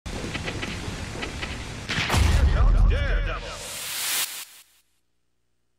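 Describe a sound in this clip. Video game music and sound effects play loudly, then cut off abruptly.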